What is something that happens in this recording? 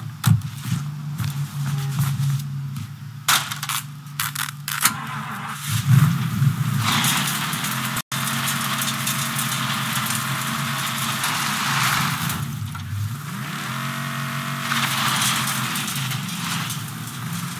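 A car engine hums steadily and revs.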